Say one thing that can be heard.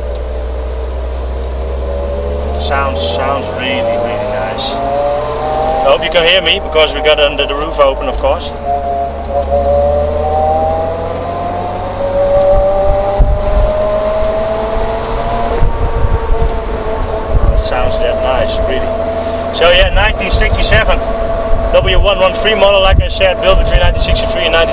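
A car engine hums and rises in pitch as it speeds up through the gears.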